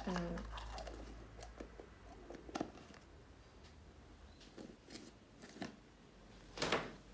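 A plastic jar lid knocks and scrapes as it is twisted open.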